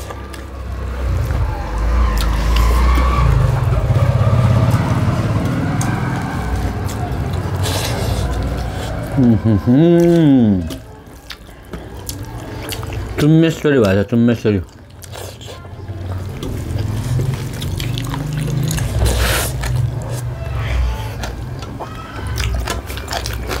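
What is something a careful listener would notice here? Fingers squish and mix rice on metal plates.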